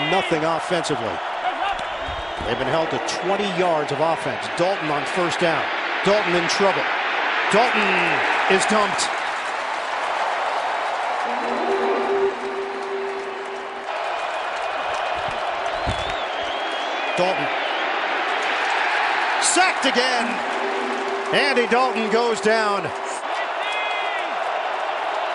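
A large crowd roars steadily in a big stadium.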